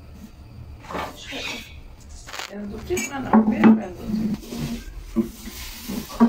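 A rolling pin knocks lightly on a wooden board.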